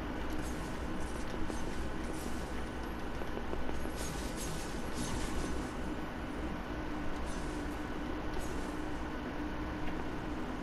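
Footsteps patter quickly over the ground.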